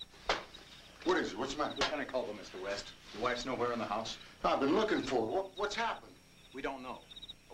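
A man talks urgently nearby.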